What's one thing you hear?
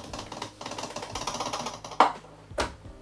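Sugar pours through a funnel into a glass jar.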